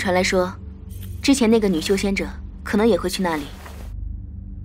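A young woman speaks quietly and calmly.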